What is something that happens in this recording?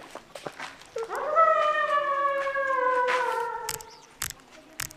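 A young woman sings out a long falling note that echoes around a stone hall.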